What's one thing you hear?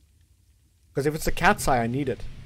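A man talks loudly and with animation into a close microphone.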